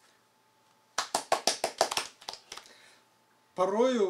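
Hands clap quickly several times.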